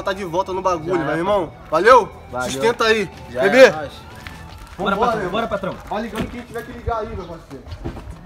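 A young man speaks forcefully up close.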